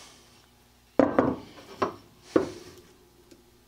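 A metal object knocks down onto a wooden bench.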